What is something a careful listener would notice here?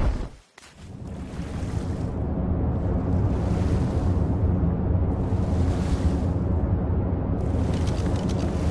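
Water rumbles and gurgles steadily underwater.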